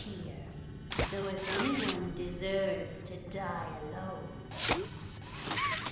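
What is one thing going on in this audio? A mechanical grabber hand shoots out with a whoosh.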